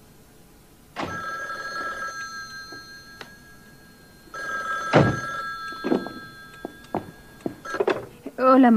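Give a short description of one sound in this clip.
A telephone rings.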